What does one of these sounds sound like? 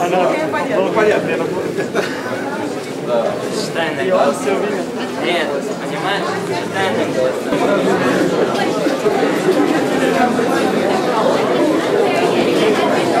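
A crowd of men and women chatter loudly all around in an echoing room.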